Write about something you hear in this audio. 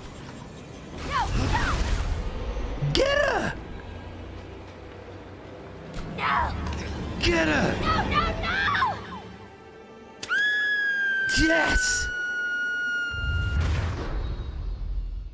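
A young woman screams in panic.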